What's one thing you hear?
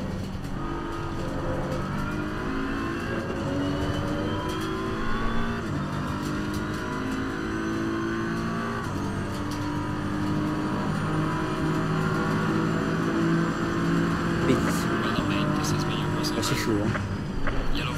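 A racing car engine roars and climbs in pitch through the gears.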